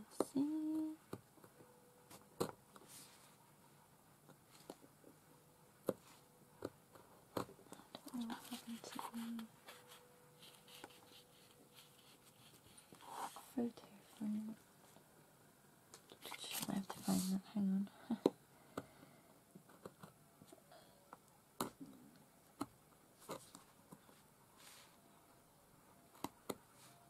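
A craft tool taps and scrapes on card stock.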